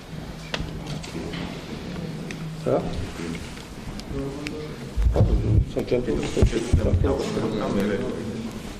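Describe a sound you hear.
Several men talk quietly among themselves nearby.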